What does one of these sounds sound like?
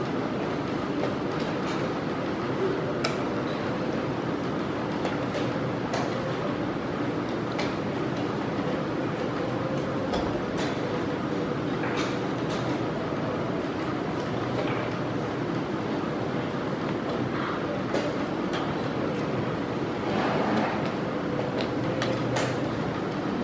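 A chess clock button clicks sharply.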